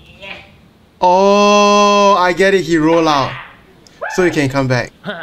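A young man laughs loudly and shouts into a close microphone.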